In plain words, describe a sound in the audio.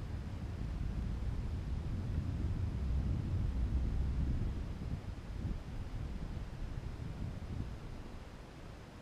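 Wind buffets the microphone with low rumbling gusts, then dies down.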